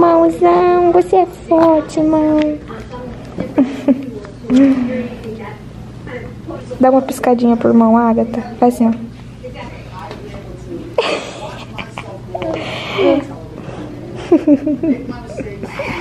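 A toddler girl babbles and giggles close by.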